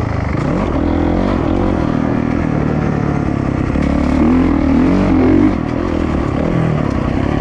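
A dirt bike engine revs loudly, rising and falling as the rider shifts.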